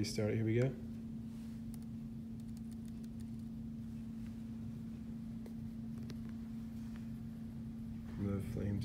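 A steady low tone hums from a small laptop speaker.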